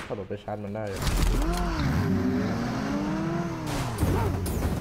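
A car engine hums and revs up and down.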